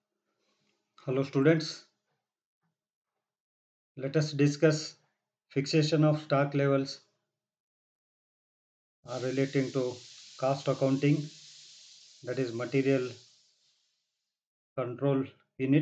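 An elderly man speaks calmly and steadily into a close microphone, with pauses between phrases.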